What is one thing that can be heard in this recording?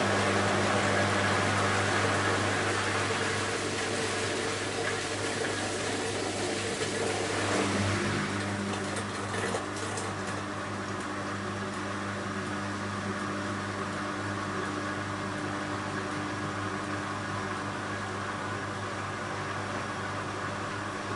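A washing machine hums steadily as its drum turns.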